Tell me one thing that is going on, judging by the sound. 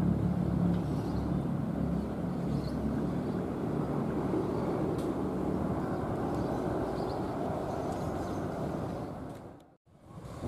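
A train rumbles past on the tracks nearby.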